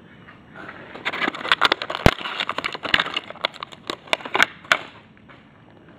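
A plastic packet crinkles and rustles as it is handled.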